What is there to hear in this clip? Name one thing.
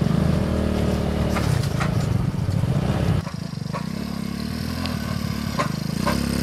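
A small motor tricycle's engine chugs steadily nearby.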